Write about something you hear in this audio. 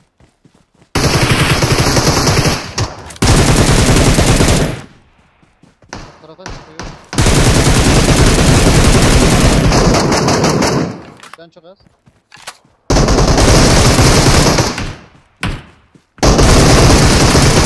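A rifle fires in rapid, loud automatic bursts.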